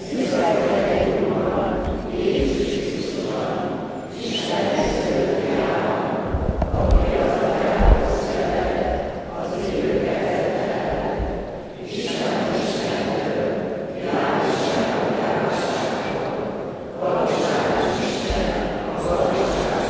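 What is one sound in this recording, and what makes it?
A man speaks steadily through a microphone in a large echoing hall.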